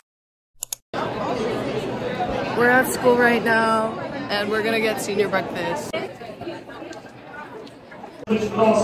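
Young women talk and shout excitedly close by.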